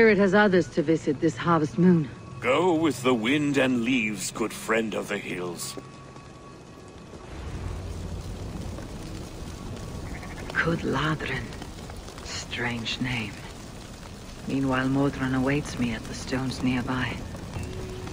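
A man speaks calmly in a low voice, close by.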